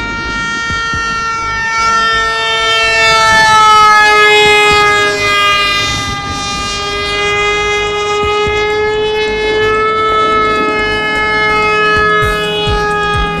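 A model jet's engine whines loudly overhead, its pitch sliding up and down as it passes.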